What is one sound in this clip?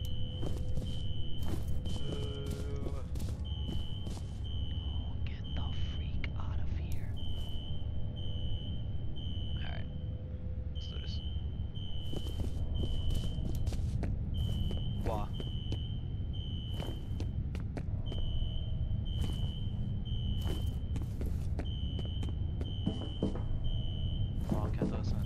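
A young man speaks quietly into a headset microphone.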